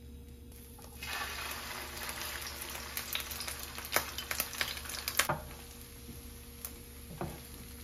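Shredded cabbage and egg sizzle loudly in a hot pan.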